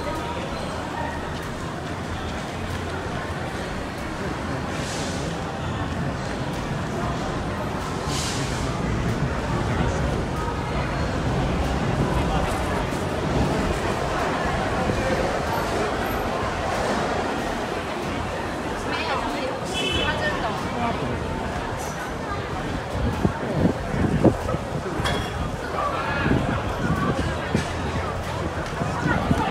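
Footsteps shuffle and tap on a hard floor.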